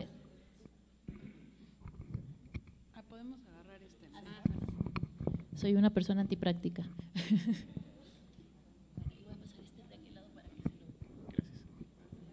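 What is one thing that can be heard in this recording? A second woman talks and laughs, heard through a microphone.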